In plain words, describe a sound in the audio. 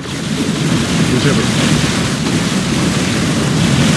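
Explosions burst and rumble.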